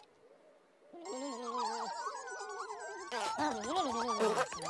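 Small figures chatter in high, squeaky, babbling voices.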